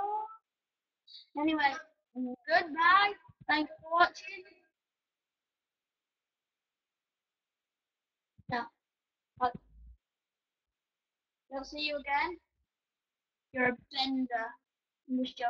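A boy talks close to a microphone in short bursts, with pauses.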